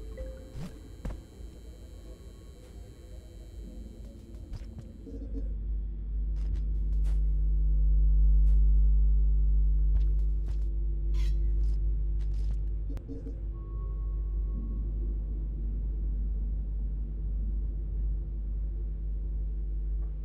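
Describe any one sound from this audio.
A deep, steady electronic drone hums and swells.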